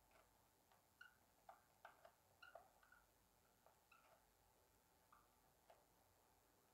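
A marker squeaks faintly on paper.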